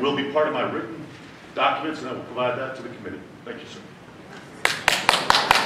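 A middle-aged man speaks calmly into a microphone.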